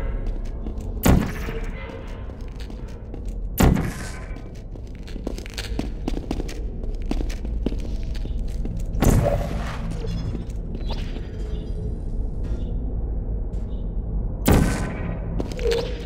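A sci-fi energy gun fires with sharp, crackling zaps, several times.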